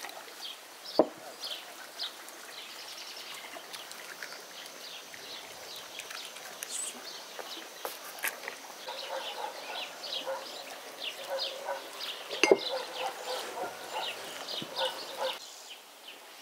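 Hands squish and knead flour and dough in a glass bowl.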